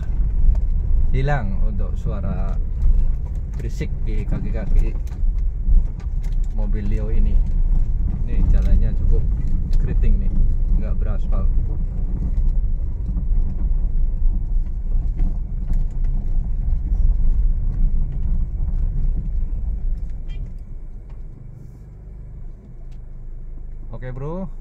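Tyres rumble over a rough dirt road.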